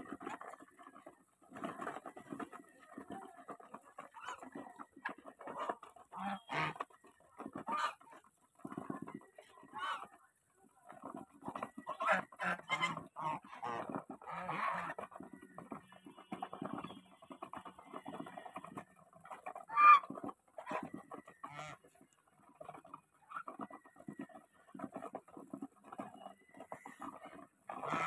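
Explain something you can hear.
Geese peck and dabble noisily at food.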